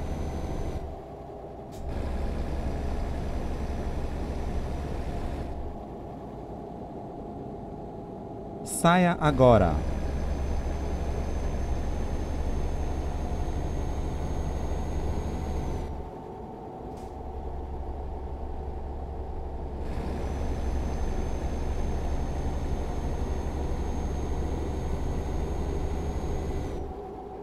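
A truck engine hums steadily, dropping and rising in level.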